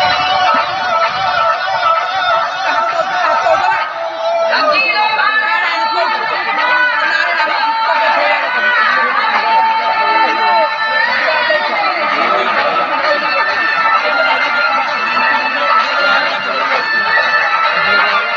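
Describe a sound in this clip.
Loud music with a woman singing plays over loudspeakers outdoors.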